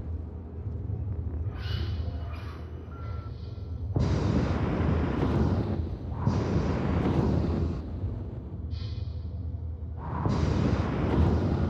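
A spaceship engine hums low and roars in bursts of thrust.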